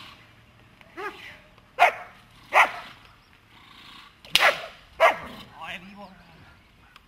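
A dog barks loudly and sharply, close by.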